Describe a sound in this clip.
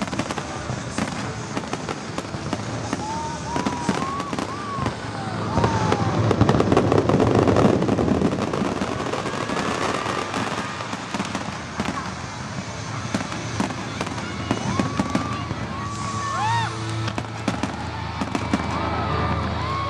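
Fireworks crackle and sparkle.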